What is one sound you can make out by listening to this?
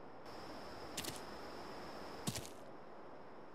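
Footsteps thud on the ground.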